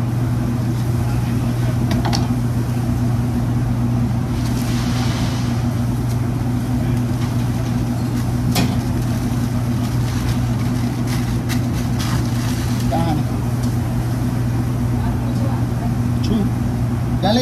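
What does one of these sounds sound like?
An exhaust hood hums steadily.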